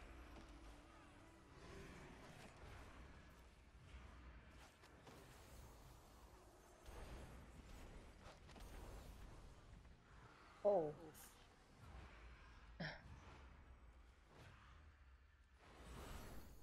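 Magic blasts and combat effects crackle and whoosh in quick bursts.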